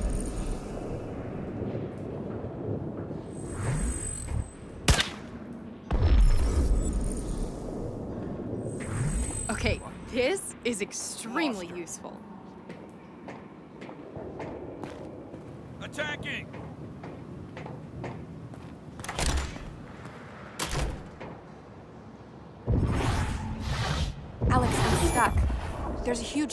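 Footsteps clank on metal stairs.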